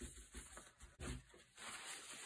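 A gun barrel knocks lightly against a wooden surface.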